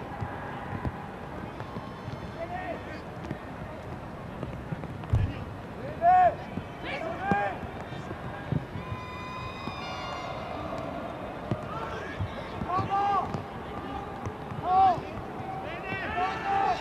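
A stadium crowd murmurs steadily in the open air.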